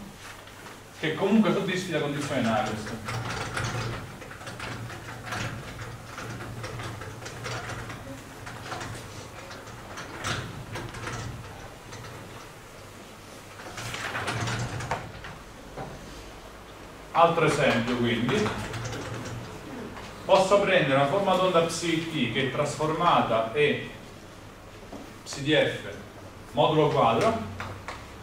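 A man speaks calmly, as if lecturing.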